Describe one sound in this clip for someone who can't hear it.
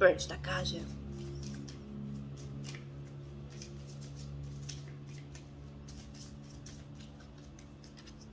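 Playing cards rustle and click in a woman's hands.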